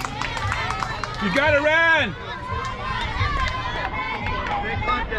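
Young girls cheer and chant loudly outdoors.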